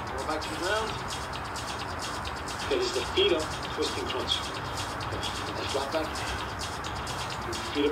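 A blanket rustles as a man shifts and gets up from it.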